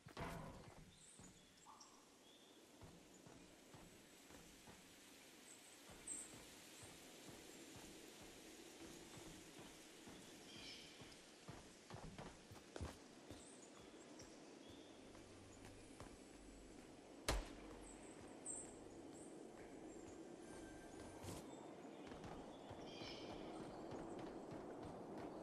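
Footsteps thud on a metal roof.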